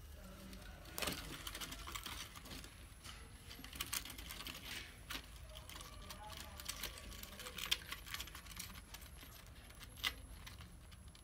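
A mouse scratches and scrabbles against a plastic cup.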